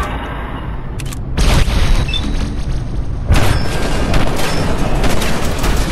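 Heavy impacts and explosions thud.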